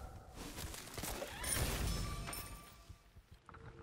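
Magical game sound effects whoosh and crackle.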